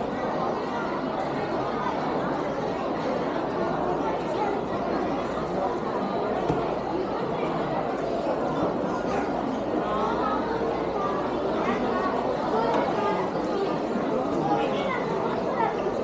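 A crowd of people chatters indoors in a busy hall.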